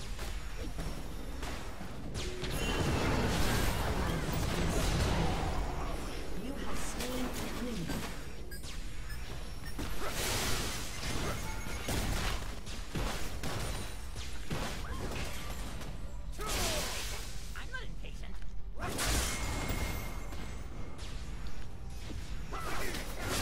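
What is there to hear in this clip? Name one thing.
Game spell effects whoosh, clash and burst in quick succession.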